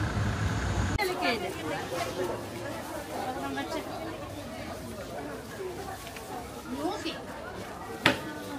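Voices of people chatter quietly in a busy market.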